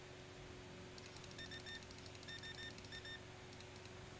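A checkout scanner beeps several times.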